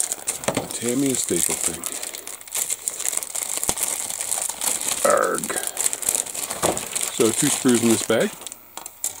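A plastic wrapper crinkles and rustles up close.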